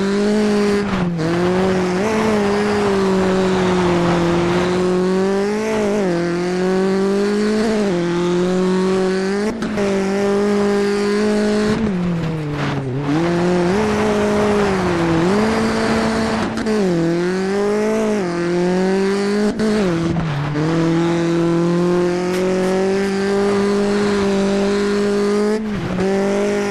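A rally car engine roars loudly, its pitch rising and dropping with each gear change.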